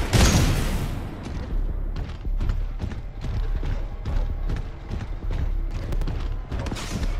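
Heavy mechanical footsteps thud steadily.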